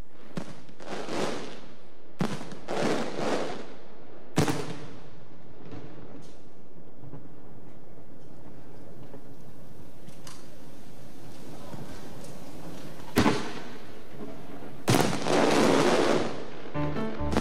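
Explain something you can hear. Fireworks crackle and fizz after bursting.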